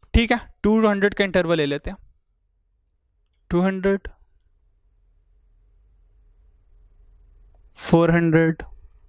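A man lectures calmly into a close microphone, in short bursts with pauses.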